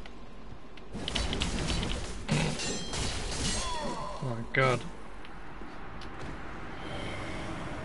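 Swords clash and strike.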